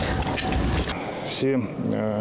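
A middle-aged man speaks calmly into a microphone outdoors.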